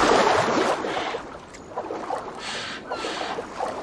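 Footsteps wade and slosh through shallow water.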